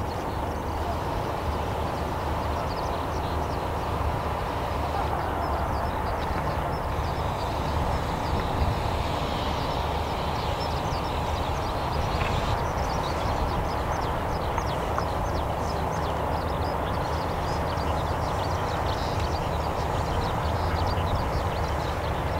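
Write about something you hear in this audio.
Wind rumbles steadily.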